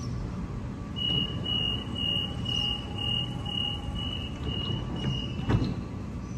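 A train's door warning beeps rapidly.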